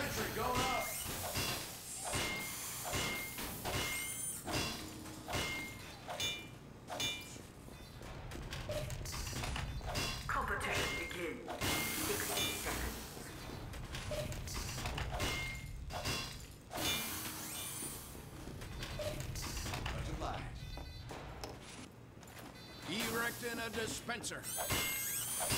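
A metal wrench bangs repeatedly on metal machinery.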